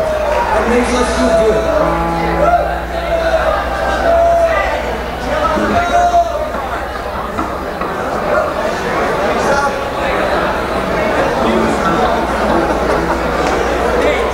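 A band plays loud live music.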